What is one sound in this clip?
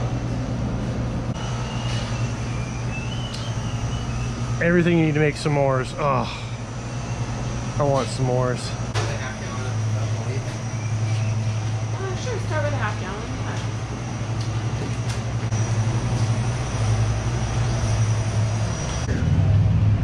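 Refrigerated cases hum steadily.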